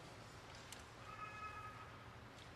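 A choir sings softly in a large hall.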